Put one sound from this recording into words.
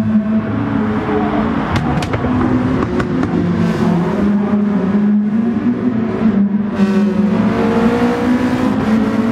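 Racing car engines roar at high revs and shift through gears.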